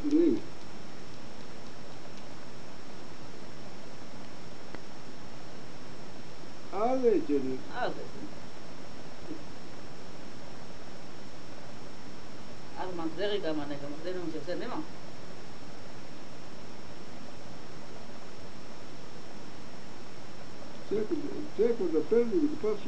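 An elderly woman speaks calmly in short bursts nearby.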